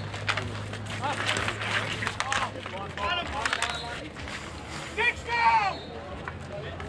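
Men shout across the court outdoors.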